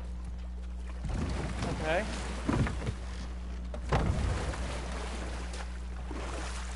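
An oar dips and pulls through water.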